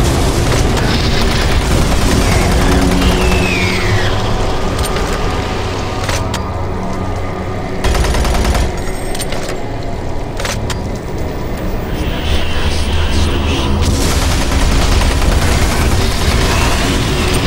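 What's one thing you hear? Monsters snarl and growl.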